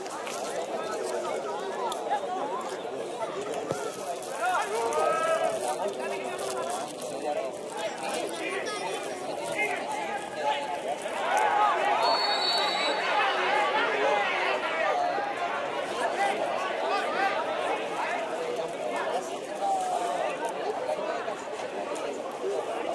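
Several men chatter loudly nearby outdoors.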